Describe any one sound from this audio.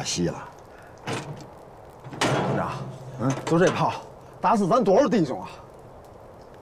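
A young man speaks emotionally, his voice strained, close by.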